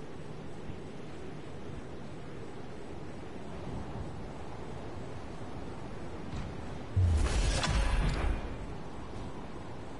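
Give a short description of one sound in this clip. Wind rushes steadily past a figure gliding through the air.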